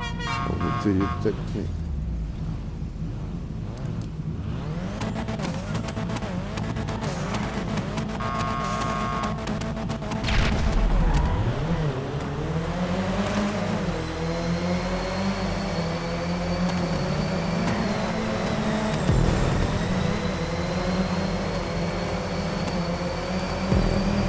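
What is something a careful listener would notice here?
A car engine revs and roars up and down.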